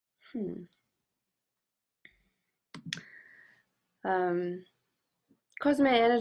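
A young woman speaks calmly and close to the microphone, with short pauses.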